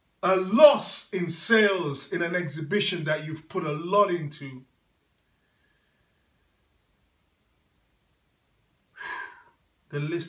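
A man speaks calmly and clearly close by, with pauses.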